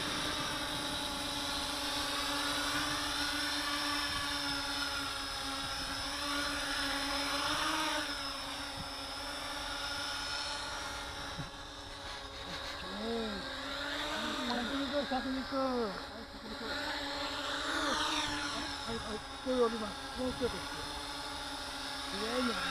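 A drone's propellers buzz steadily nearby, the pitch wavering.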